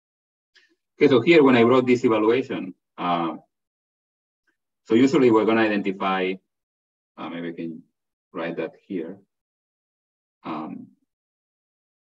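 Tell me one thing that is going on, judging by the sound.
A man lectures calmly over an online call.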